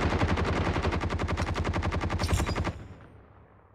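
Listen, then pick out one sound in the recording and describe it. A rifle fires in a rapid automatic burst, with a loud, echoing crack.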